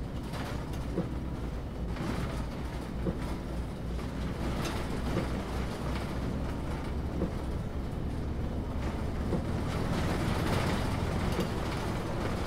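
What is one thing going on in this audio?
Windscreen wipers sweep and thump across the glass.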